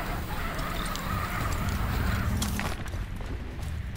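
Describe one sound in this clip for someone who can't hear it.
A woman lands with a thud on rock.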